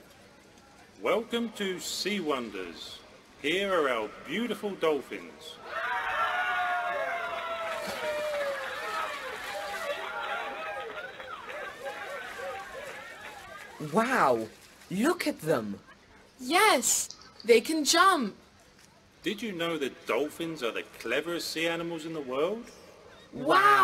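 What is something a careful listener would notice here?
A young man speaks cheerfully into a microphone.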